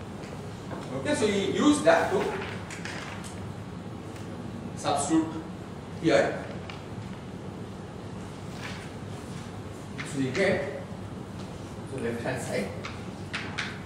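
A man lectures in a calm voice.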